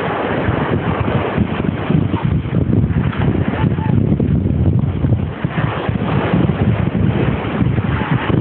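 Fingers rub against a microphone with loud, muffled scraping.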